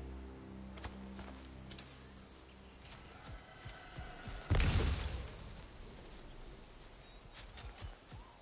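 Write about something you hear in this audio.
Heavy footsteps tread steadily over dirt and leaves.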